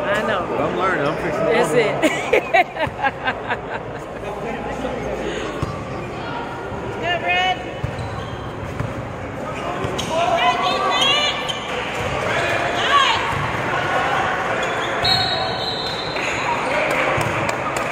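Young players and spectators shout and call out across the gym.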